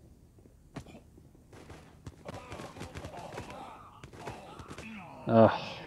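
Rapid gunshots fire in a video game.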